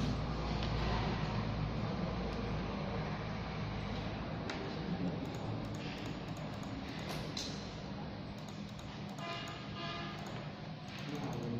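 Metal knitting needles click and scrape softly against each other.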